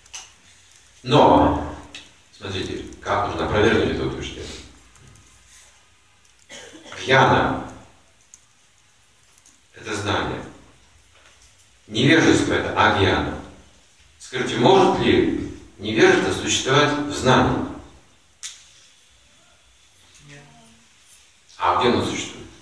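An elderly man speaks calmly and clearly nearby, pausing between phrases.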